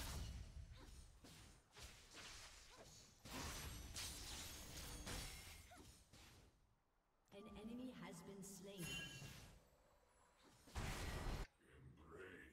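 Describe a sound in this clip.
Video game battle sounds crackle and boom with spell blasts.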